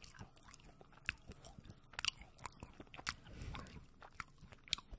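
A woman bites and chews a snack close to a microphone.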